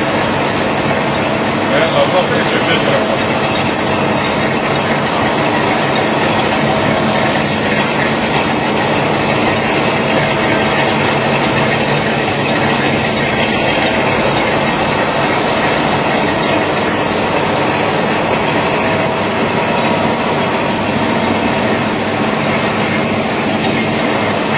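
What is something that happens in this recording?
A stretch film rewinding machine runs, its rollers whirring steadily.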